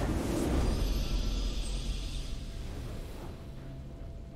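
A triumphant game victory fanfare swells and fades.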